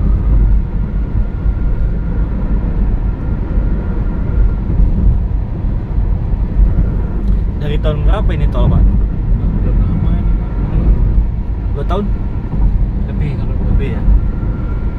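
A car drives steadily along a highway, with a low rumble of road noise inside the cabin.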